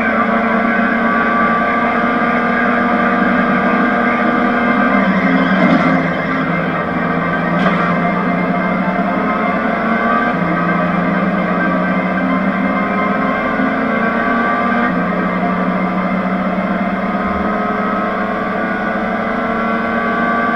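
A racing car engine drones steadily, its pitch rising and falling with the gear changes.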